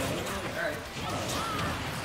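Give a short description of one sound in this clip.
Punches and hits land with sharp video game impact sounds.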